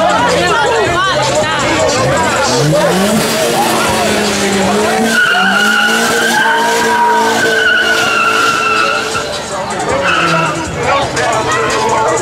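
A car engine revs hard close by.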